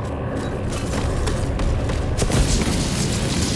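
Rapid gunfire blasts loudly.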